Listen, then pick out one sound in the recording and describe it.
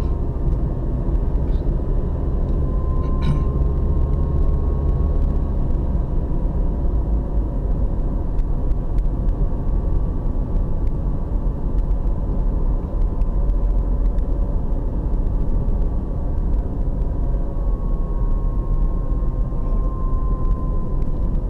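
Tyres roll with a low rumble on the road.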